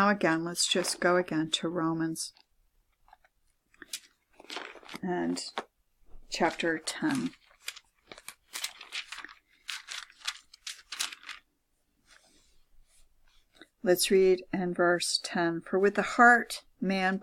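An elderly woman reads aloud close by, in a steady chanting voice.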